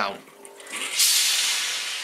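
A steam iron hisses.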